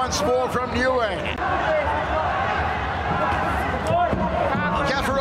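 A crowd cheers and murmurs in a large arena.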